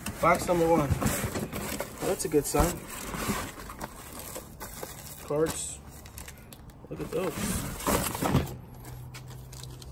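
Cardboard flaps rustle and scrape as a box is handled.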